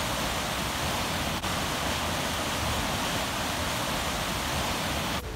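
A stream rushes steadily over rocks nearby.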